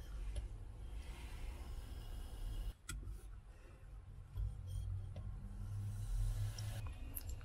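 Cola pours into a plastic cup and fizzes softly.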